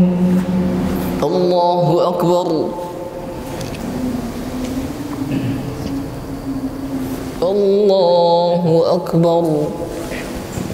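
A young man chants in a drawn-out, melodic voice through a microphone.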